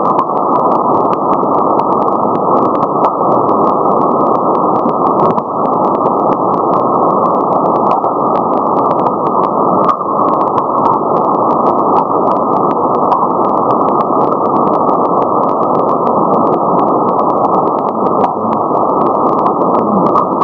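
A shortwave radio hisses with steady, muffled static.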